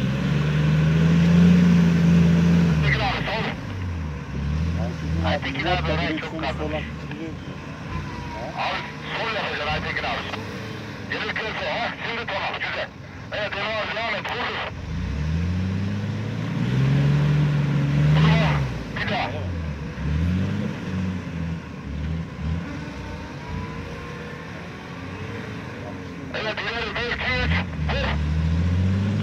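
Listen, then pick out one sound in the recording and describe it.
Tyres churn and splash through mud and water.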